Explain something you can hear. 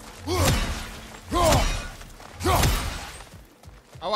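A heavy metal weapon strikes hard with a crackle of sparks, several times.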